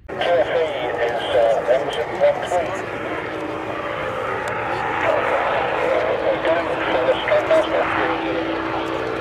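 A single-engine radial piston aircraft roars at full power on its takeoff run.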